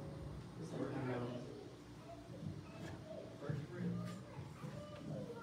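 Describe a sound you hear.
Adults chat quietly nearby in a large room with some echo.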